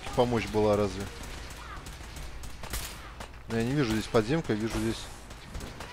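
A laser rifle fires in sharp zapping shots.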